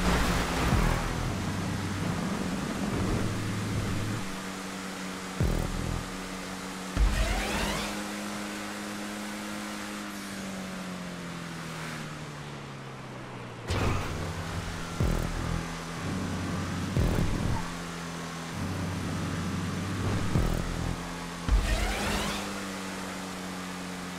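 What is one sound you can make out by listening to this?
A race car engine roars steadily, its pitch rising and falling with the gears.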